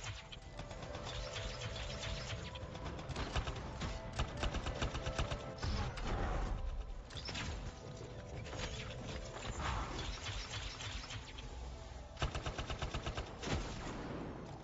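Energy blasts crackle and boom.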